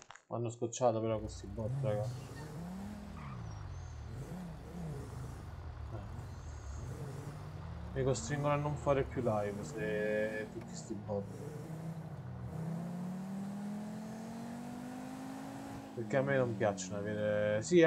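A car engine hums and revs up and down as the car drives.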